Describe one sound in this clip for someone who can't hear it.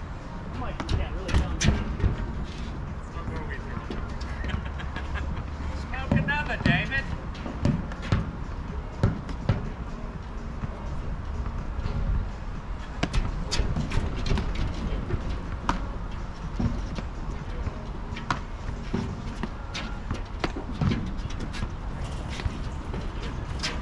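Paddles pop against a ball in a quick back-and-forth rally.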